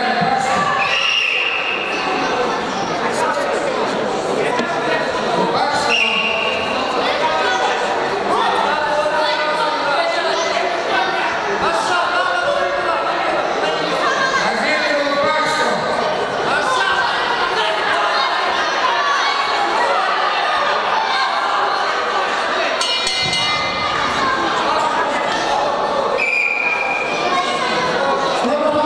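A crowd of men and children chatters in an indoor hall.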